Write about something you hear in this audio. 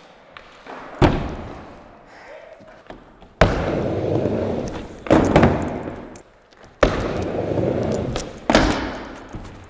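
A skateboard clacks sharply as it lands on a ramp.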